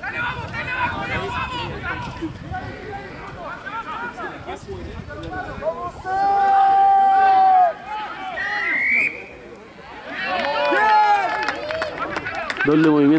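Men shout and call out to each other across an open outdoor field.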